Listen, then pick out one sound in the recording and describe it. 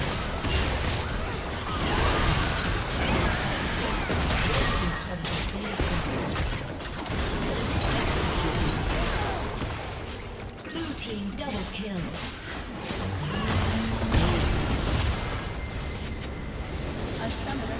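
Spell effects crackle and blast in a fast game fight.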